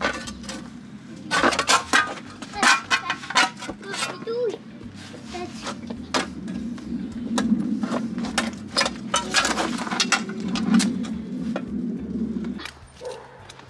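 A man scrapes and scoops wet mud with his gloved hands.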